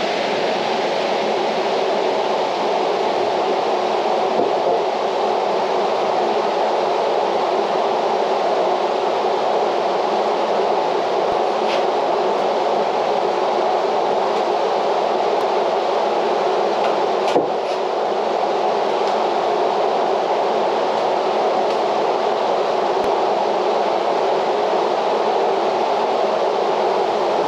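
Wood knocks against wood.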